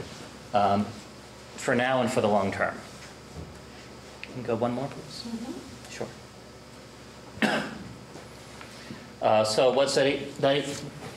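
A middle-aged man speaks calmly in short phrases into a microphone, with pauses.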